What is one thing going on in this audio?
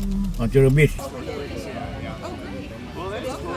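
A group of men and women chatter close by outdoors.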